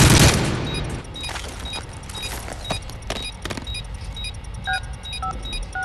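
An electronic device beeps steadily at an even pace.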